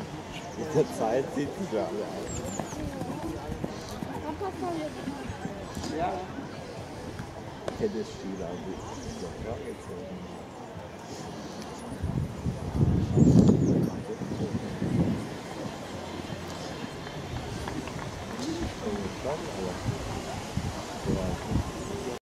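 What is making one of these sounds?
A horse's hooves thud on grass at a canter.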